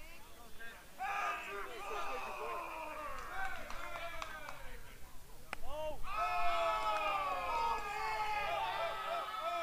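Players and spectators shout and cheer outdoors.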